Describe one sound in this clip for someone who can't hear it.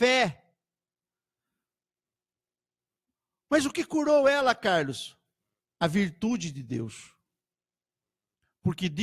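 A middle-aged man speaks with animation into a close microphone, in bursts with pauses.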